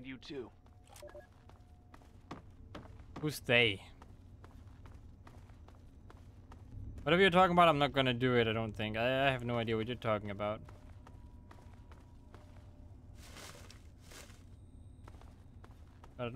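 Footsteps crunch softly over rubble.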